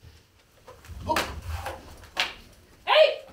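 Wooden swords clack together.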